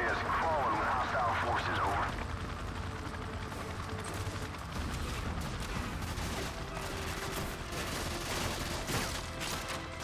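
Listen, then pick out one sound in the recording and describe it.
A helicopter drones overhead with a low, steady thudding rumble.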